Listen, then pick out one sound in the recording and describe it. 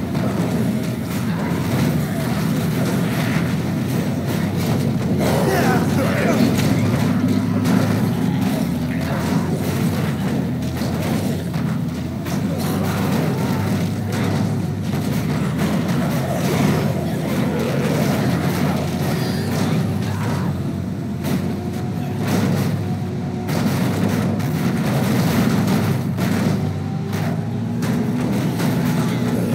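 A car engine roars steadily as the car drives.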